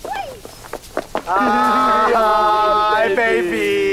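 A woman calls out a greeting.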